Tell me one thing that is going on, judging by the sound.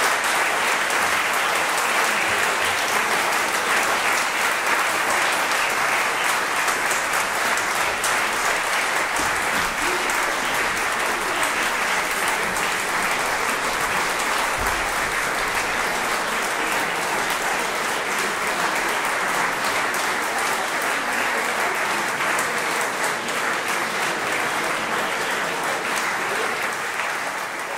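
A string ensemble plays a fast, lively piece in an echoing hall.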